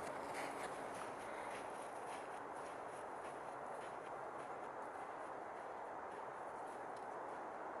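Boots crunch on snow as a person walks away.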